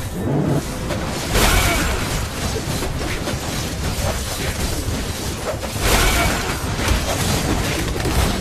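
Game battle effects clash and whoosh with magic blasts and hits.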